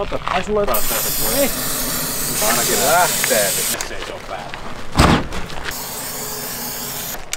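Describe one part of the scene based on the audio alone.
An aerosol can hisses as it sprays.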